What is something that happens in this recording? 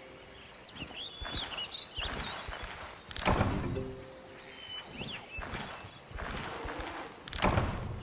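Leaves rustle as plants are picked.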